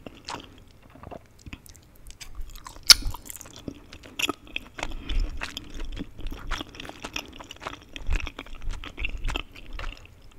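Chopsticks click and tap against a metal pan.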